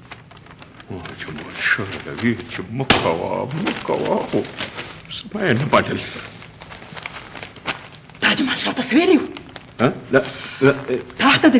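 An elderly man speaks with emotion, close by.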